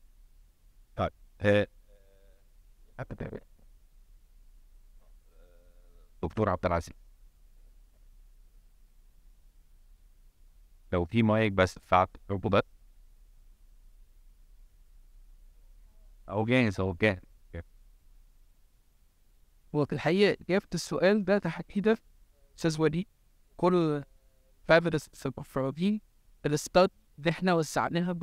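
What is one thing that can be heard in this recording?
A middle-aged man speaks calmly into a microphone, in bursts with long pauses, in a large hall.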